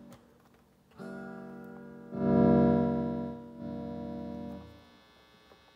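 An acoustic guitar strums a few ringing chords close by.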